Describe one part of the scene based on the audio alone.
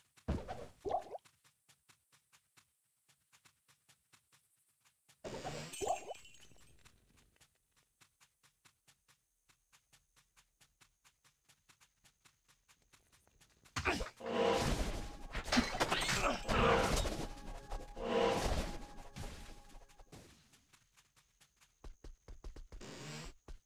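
Footsteps tread at an even walking pace.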